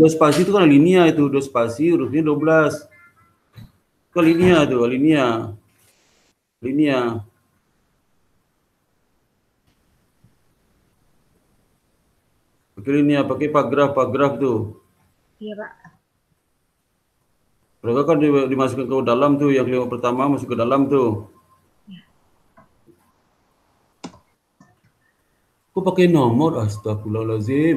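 A young man speaks calmly in bursts over an online call.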